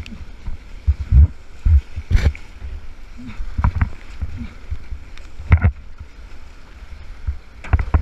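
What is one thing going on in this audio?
A paddle splashes into churning water.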